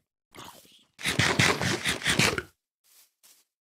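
Loud chewing and munching sounds repeat quickly.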